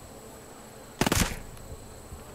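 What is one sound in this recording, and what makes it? A silenced gunshot pops once.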